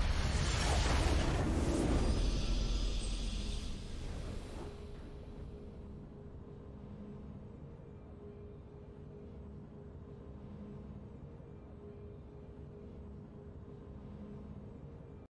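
A game's victory fanfare swells and then settles into a soft, steady drone.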